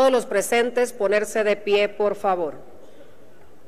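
A woman speaks loudly through a microphone.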